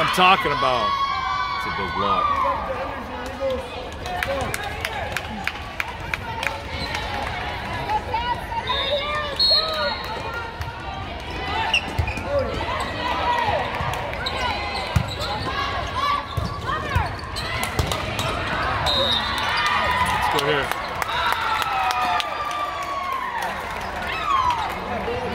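Young women call out and cheer across a large echoing hall.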